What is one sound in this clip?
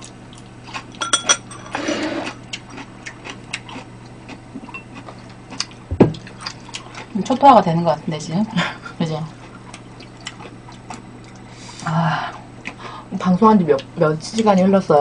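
Chopsticks and utensils clink against dishes.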